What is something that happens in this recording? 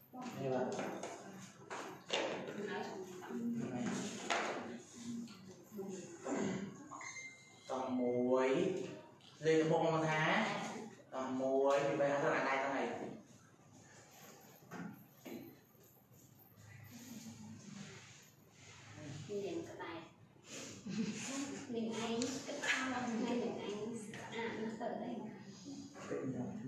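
Young women talk nearby.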